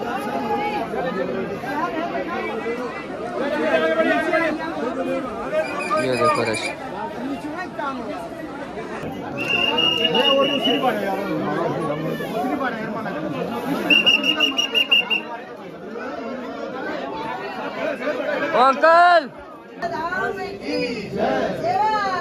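A crowd of people chatter all around.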